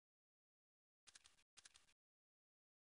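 A rifle scope clicks as it zooms in.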